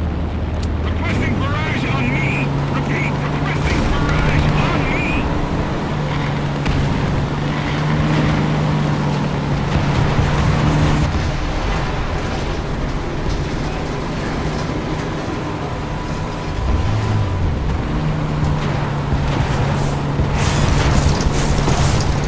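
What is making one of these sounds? A tank engine rumbles as the tank drives.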